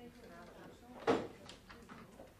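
A door bangs open.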